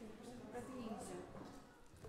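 Footsteps tap across a wooden stage.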